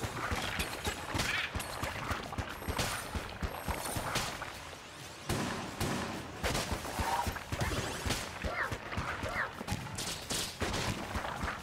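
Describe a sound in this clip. Rapid video game laser fire crackles and zaps continuously.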